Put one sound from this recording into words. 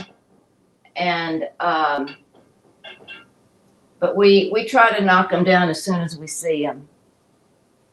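A woman talks animatedly close by.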